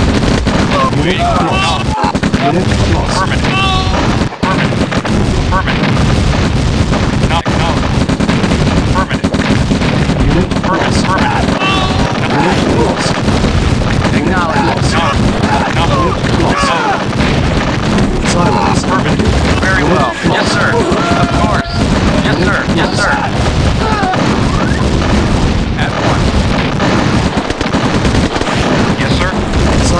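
Explosions boom repeatedly in a battle.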